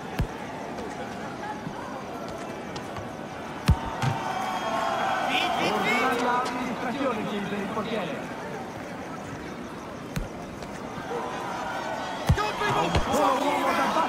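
A football is kicked with sharp thumps.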